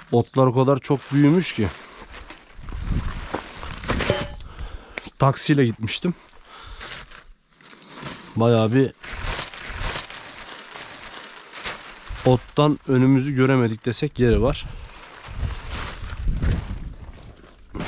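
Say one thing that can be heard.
Plastic sheeting rustles and crinkles under a hand.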